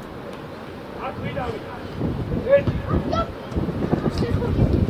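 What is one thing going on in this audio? Young boys shout to each other outdoors.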